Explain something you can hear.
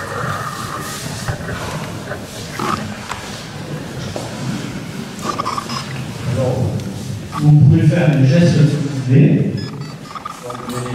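A man reads out aloud in a large echoing room.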